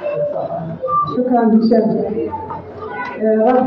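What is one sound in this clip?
A woman ululates loudly nearby.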